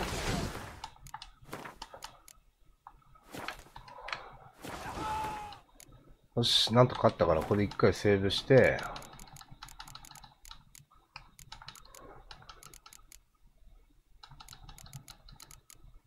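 Menu clicks tick softly, one after another.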